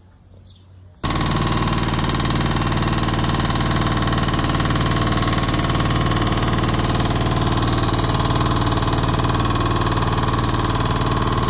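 A small pump engine runs loudly and steadily close by.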